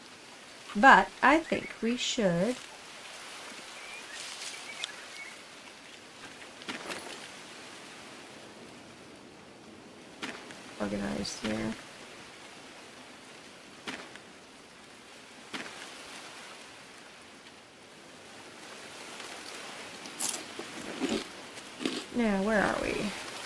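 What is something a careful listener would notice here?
Footsteps rustle through leaves and undergrowth.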